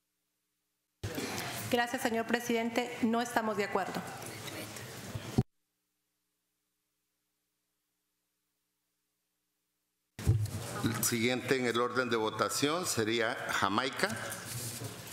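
A man speaks calmly into a microphone in a large hall.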